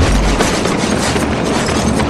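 Footsteps run across pavement.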